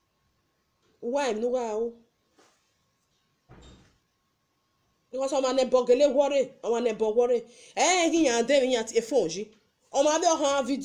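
A young woman talks with animation close to a phone microphone.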